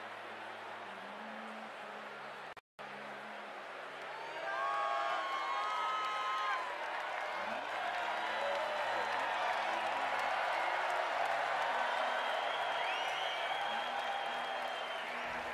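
A large outdoor crowd cheers and whistles loudly.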